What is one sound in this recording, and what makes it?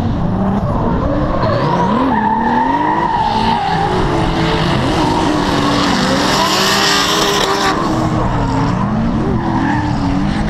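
Tyres screech and squeal on the pavement.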